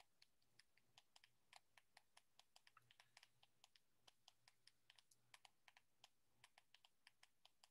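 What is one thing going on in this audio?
A woman speaks quietly over an online call.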